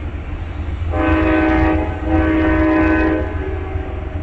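A train horn blows two long blasts close by.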